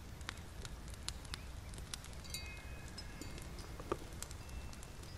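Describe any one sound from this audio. A small fire crackles and pops softly.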